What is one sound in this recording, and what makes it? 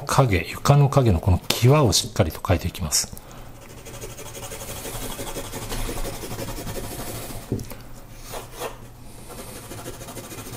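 A pencil scratches softly across paper in quick shading strokes.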